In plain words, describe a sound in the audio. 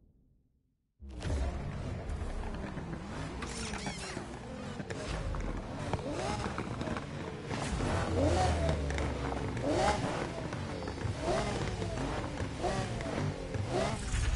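A sports car engine rumbles and revs.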